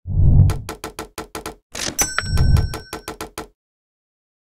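A cheerful game jingle plays with quick chiming notes.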